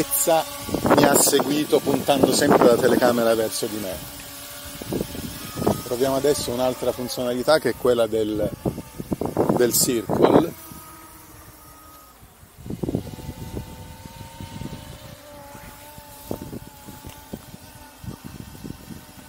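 A drone buzzes steadily overhead at a distance.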